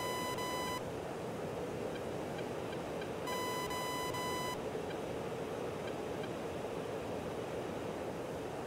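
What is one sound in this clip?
A jet fighter's engines rumble steadily, heard from inside the cockpit.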